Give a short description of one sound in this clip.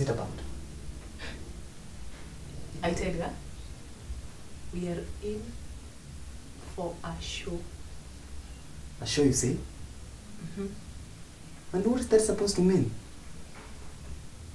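A young man speaks calmly and thoughtfully nearby.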